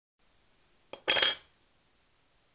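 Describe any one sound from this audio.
A metal blade clatters down onto a wooden board.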